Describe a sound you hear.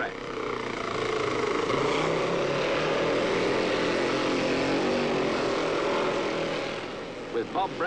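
A motorcycle engine roars past at high speed.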